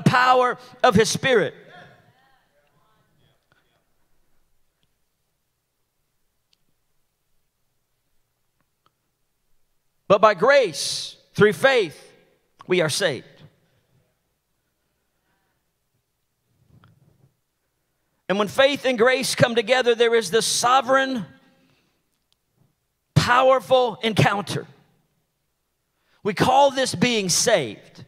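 A man speaks calmly into a microphone in a large hall, with pauses between phrases.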